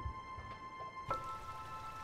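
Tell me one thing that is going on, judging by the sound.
Waves splash against wooden posts.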